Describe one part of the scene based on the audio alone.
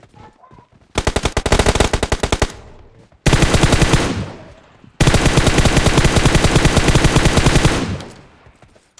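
Rapid automatic gunfire rattles in long, loud bursts.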